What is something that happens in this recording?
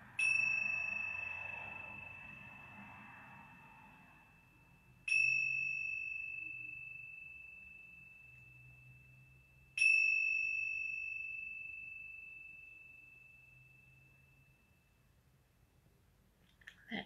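Small hand cymbals are struck together and ring out, slowly fading.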